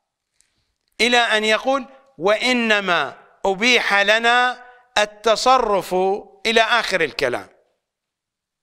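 An elderly man recites in a chanting voice through a microphone.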